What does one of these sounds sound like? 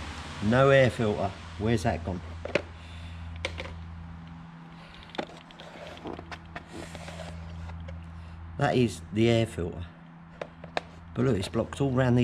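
Plastic parts knock and rattle as they are handled.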